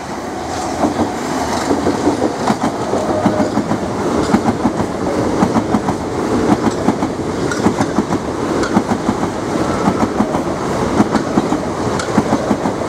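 A train rumbles past close by on the tracks.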